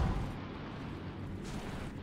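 A fire crackles and flickers nearby.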